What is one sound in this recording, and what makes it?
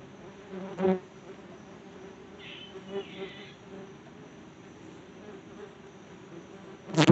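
Leaves rustle softly in a light breeze overhead.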